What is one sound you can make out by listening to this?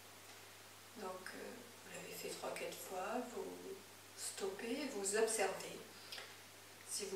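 A woman speaks slowly and calmly, close by.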